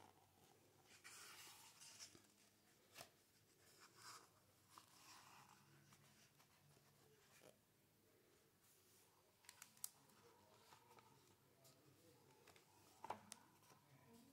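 Paper pages rustle softly as they are turned.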